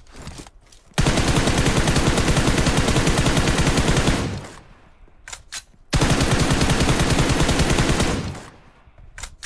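A rifle fires rapid automatic bursts.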